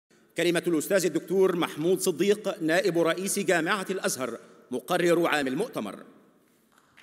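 A man speaks steadily into a microphone in a large hall.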